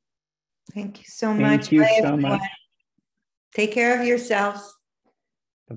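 A middle-aged woman speaks warmly over an online call.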